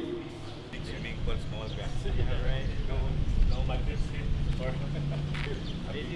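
A man talks calmly outdoors.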